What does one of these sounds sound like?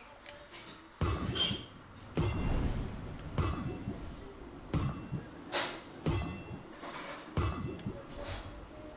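Game building pieces thud and clatter into place again and again.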